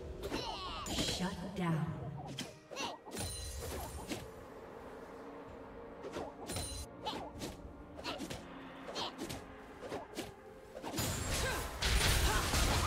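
Magic spells whoosh and crackle as fantasy characters clash in battle.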